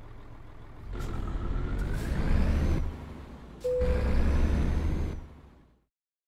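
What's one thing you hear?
A truck engine revs up loudly as the truck pulls away.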